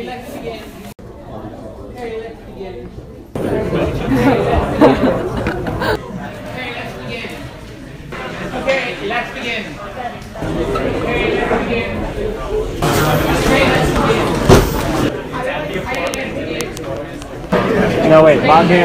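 A middle-aged man lectures in a large room, heard from the audience seats.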